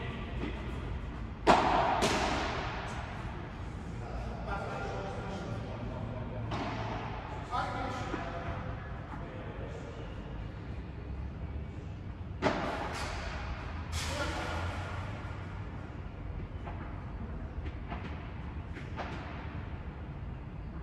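Young men talk briefly between shots.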